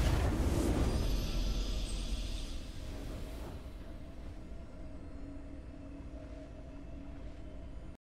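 A triumphant victory fanfare plays softly and fades.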